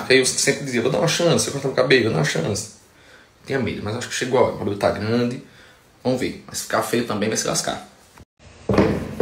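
A young man talks casually, close by.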